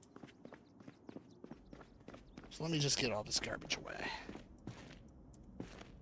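Footsteps tap on stairs.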